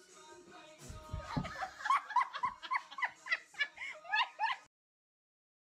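A young woman laughs and shrieks nearby.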